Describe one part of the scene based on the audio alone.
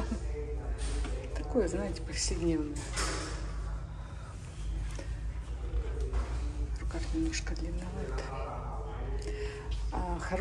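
A middle-aged woman talks casually and close by.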